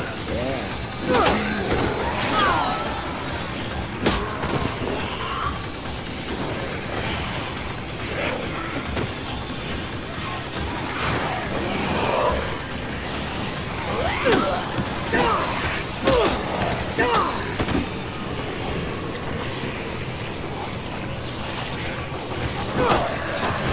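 A bat thuds against bodies in sudden blows.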